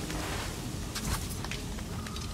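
A magical dash whooshes sharply.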